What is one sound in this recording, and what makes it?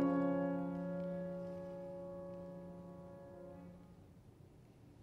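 A man sings a long, sustained operatic note in a resonant hall, then stops.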